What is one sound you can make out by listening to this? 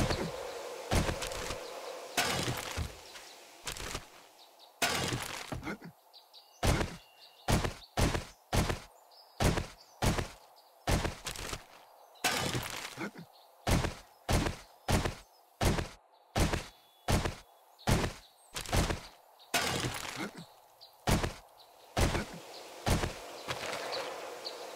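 Footsteps crunch steadily through tall grass.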